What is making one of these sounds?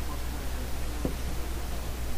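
A plastic clip clicks as it snaps into place.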